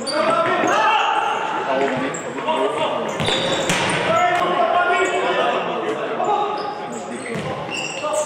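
Sneakers squeak sharply on a hard indoor court.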